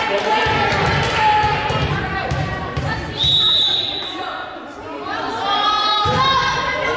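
Young women call out to each other in a large echoing gym.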